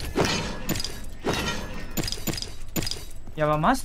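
A heavy blade strikes with a sharp impact.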